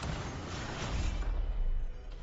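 A deep rumbling blast booms and swells.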